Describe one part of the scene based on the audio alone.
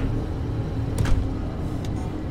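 A car door shuts with a heavy thud.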